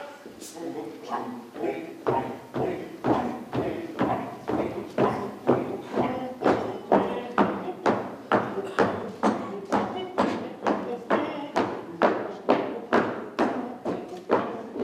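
Several men sing loudly together.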